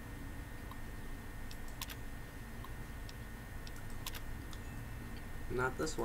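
A computer terminal's keys click and clack.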